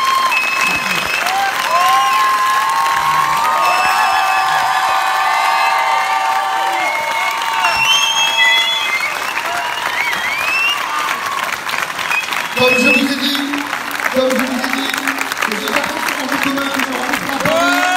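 A large crowd cheers, shouts and whistles in a big echoing hall.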